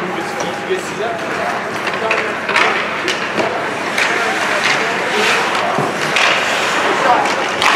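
Spectators in a small echoing rink murmur and call out.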